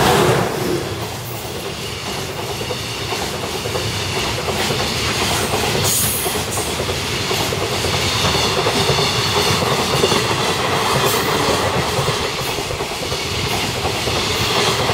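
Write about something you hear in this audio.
Train wheels clatter rhythmically over the rail joints.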